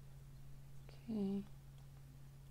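A young woman makes a brief sound with her voice close to a microphone.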